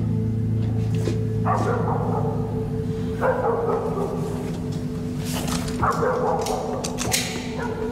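Keys click and rattle in a metal door lock.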